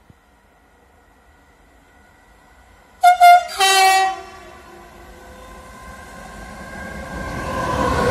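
An electric train approaches, rumbling louder and louder.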